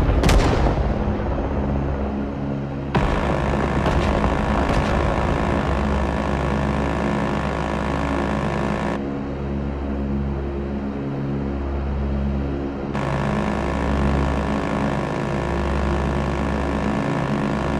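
A helicopter's rotor thumps steadily overhead.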